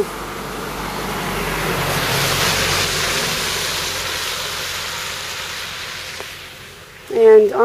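A small bus drives past close by on a wet road.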